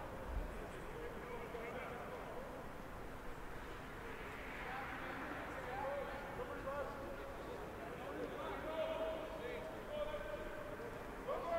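A crowd murmurs and chatters in a large open-air stadium.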